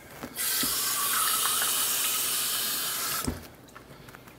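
Water runs from a tap onto hands.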